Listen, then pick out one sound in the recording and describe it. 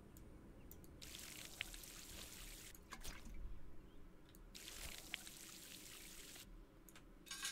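Water pours and splashes from a watering can onto soil.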